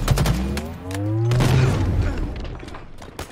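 A deep explosion booms and rumbles.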